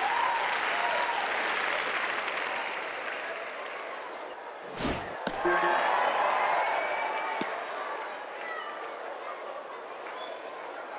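A crowd cheers steadily.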